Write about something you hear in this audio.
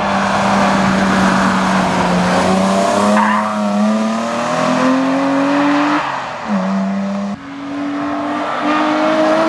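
A rally car engine roars loudly, revving up and down through gear changes as the car speeds past.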